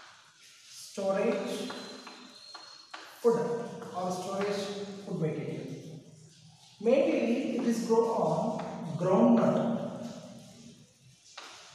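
A man speaks calmly, explaining slowly.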